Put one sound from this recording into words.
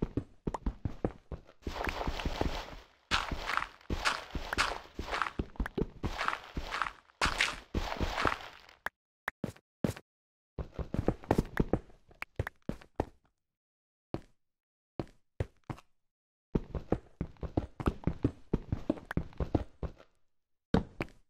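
A pickaxe chips rapidly at stone, with blocks crumbling and breaking.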